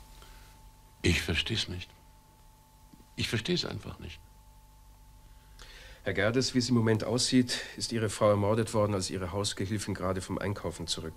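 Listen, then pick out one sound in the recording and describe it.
An elderly man speaks calmly in a deep voice.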